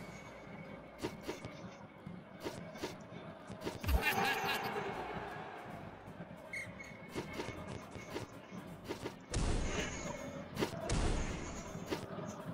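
A ball is struck with sharp thuds in a game, again and again.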